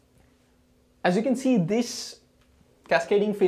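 A young man speaks close by, explaining with animation.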